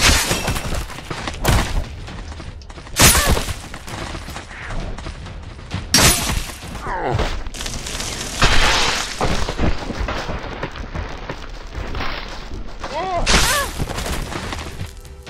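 A heavy blade swings and strikes flesh with wet thuds.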